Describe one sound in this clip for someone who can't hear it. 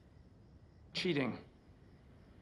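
A man answers briefly and calmly.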